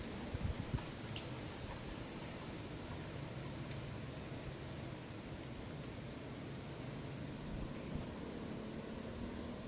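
A slow river flows quietly outdoors.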